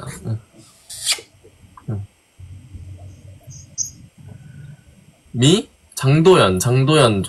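A young man talks over an online call.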